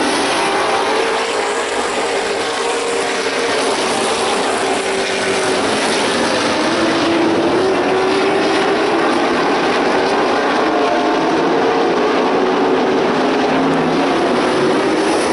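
Race car engines roar loudly around a track.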